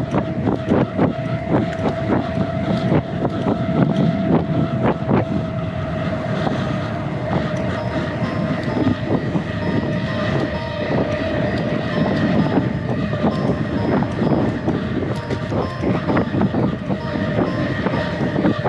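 Bicycle tyres roll over a rough road.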